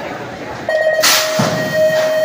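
A metal start gate slams down with a clang.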